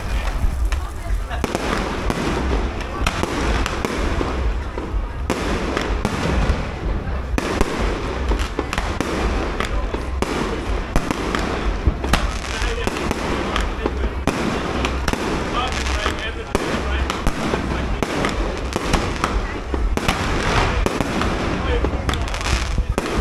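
Fireworks bang and crackle nearby, one burst after another.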